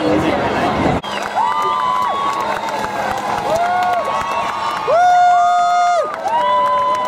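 A crowd cheers along a parade route.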